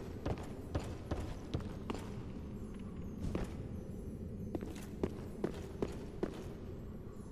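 Armoured footsteps clank on stone at a steady pace.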